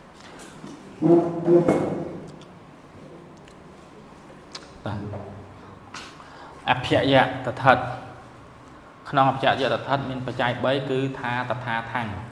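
A man speaks through a microphone, explaining calmly.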